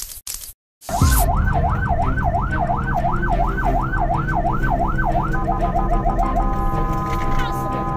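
A siren wails loudly, rising and falling, then switches to a fast yelp.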